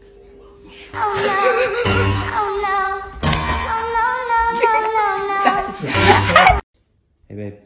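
A woman laughs loudly and shrieks with delight.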